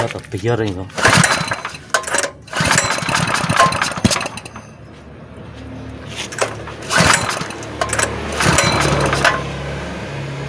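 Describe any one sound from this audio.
A starter cord is yanked sharply on a small engine, again and again.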